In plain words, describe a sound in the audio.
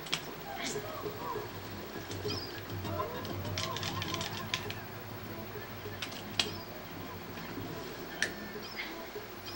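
Little chirping and blipping sound effects play from a television speaker.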